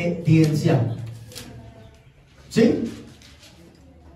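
A young man speaks into a microphone in short phrases.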